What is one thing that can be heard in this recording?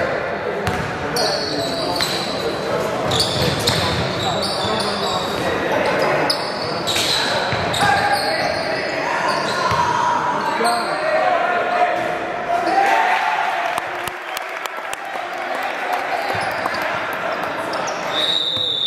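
Young players call out and shout across an echoing gym.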